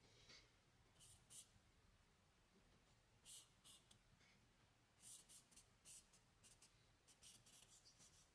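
Charcoal scratches and rubs across paper in short strokes.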